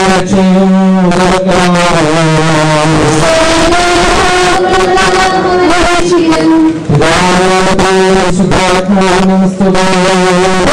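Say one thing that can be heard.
A group of women sing a slow, mournful hymn together.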